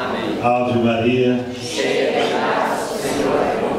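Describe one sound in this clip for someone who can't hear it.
An elderly man sings loudly close by.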